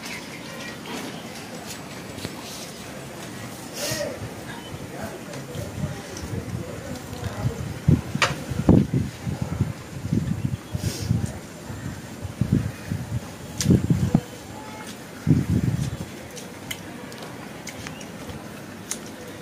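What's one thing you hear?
Fingers squish and mix rice on a plate.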